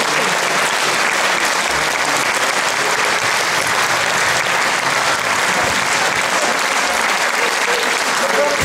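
An audience applauds and cheers loudly in a large hall.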